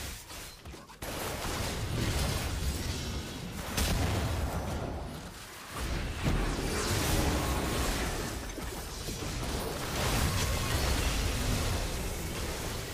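Game combat effects clash and burst in quick succession.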